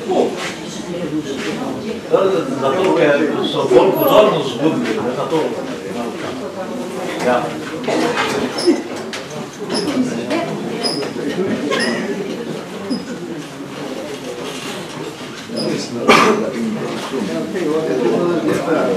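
An elderly man reads out a text through a microphone and loudspeaker, in a room with some echo.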